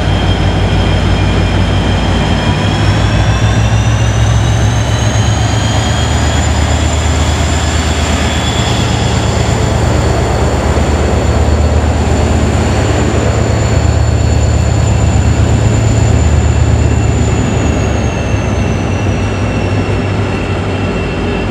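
Train wheels roll and rumble along the rails.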